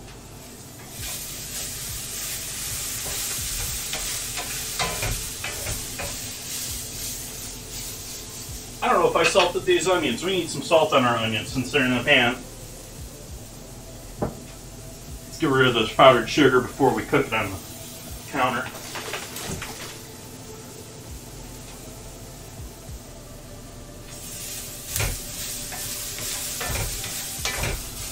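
Onions sizzle steadily in a hot pan.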